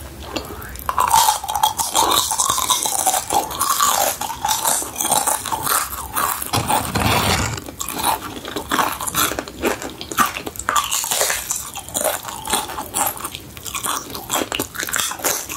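Tortilla chips crunch loudly as a young woman bites into them.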